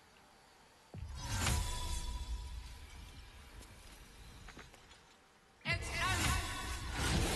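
A magic spell hums and crackles with a shimmering rush.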